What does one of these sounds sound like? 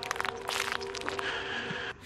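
Magic sparks fizz and crackle.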